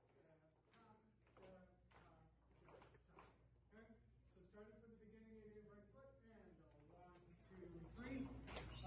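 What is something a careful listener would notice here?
People chatter quietly in a large echoing hall.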